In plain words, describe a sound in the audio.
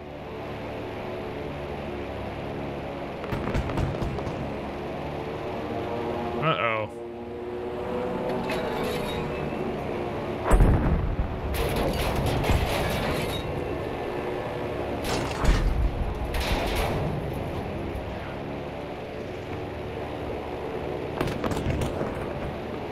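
A plane's engine drones steadily.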